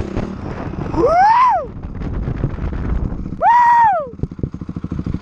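A dirt bike engine revs up sharply and drops back, twice.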